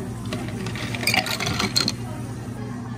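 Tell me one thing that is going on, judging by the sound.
Ice cubes clatter into a glass.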